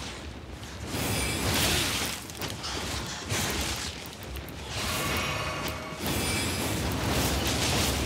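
A sword swings and strikes with sharp metallic blows.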